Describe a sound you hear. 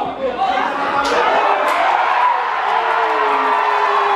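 Spectators cheer and shout outdoors.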